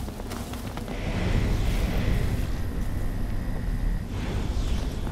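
A magical shimmering chime rings out as glowing crystals are absorbed.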